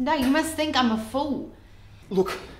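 A woman speaks tensely, close by.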